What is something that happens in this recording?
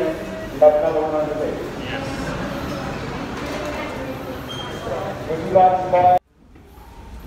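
A middle-aged man speaks close to a microphone, calmly and steadily.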